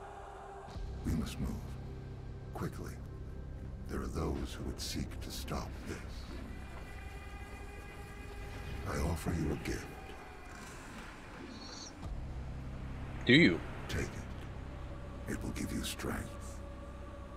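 A young man talks casually into a headset microphone.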